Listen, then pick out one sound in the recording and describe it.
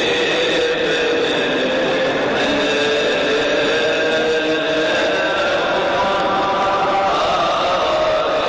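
A crowd of men chants together in a large echoing hall.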